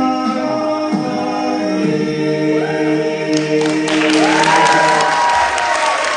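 A young man sings loudly into a microphone, holding a long high note.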